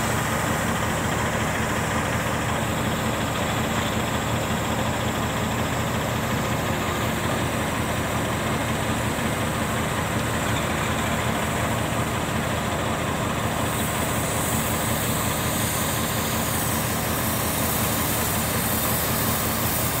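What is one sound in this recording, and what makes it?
Diesel dump truck engines rumble.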